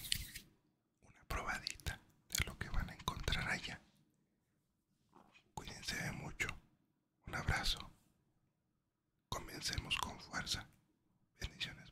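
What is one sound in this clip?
A man whispers very close to a microphone.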